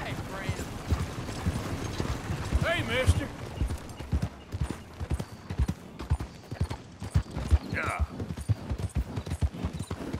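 Horse hooves thud steadily on a dirt track.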